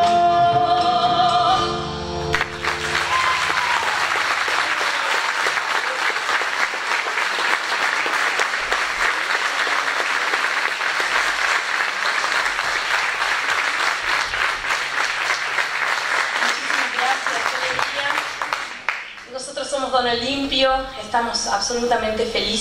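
A small band plays music.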